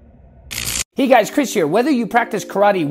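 A man speaks with animation, close to a clip-on microphone.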